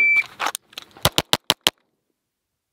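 A pistol fires several quick, sharp shots.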